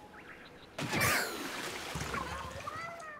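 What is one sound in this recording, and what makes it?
A game character is splatted with a wet burst.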